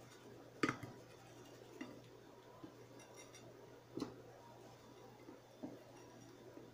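A plate knocks on a wooden table.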